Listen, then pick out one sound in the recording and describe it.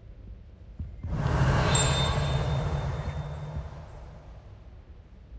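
A magic spell bursts with a loud crackling whoosh that slowly fades.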